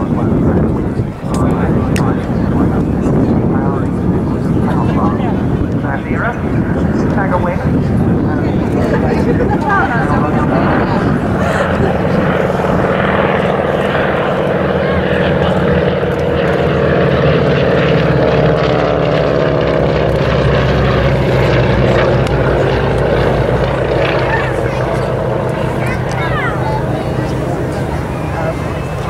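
Radial engines of two vintage propeller aircraft drone as the planes fly past overhead.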